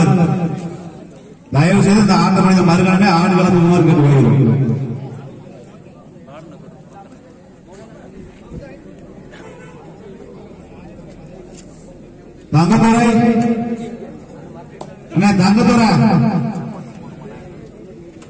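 A man commentates loudly and excitedly over a loudspeaker.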